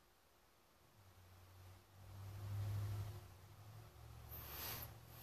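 A man hums softly close by.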